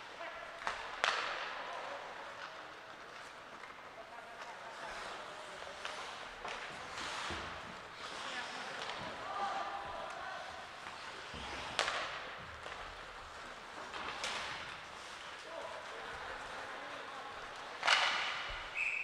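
Hockey sticks click and slap against the puck.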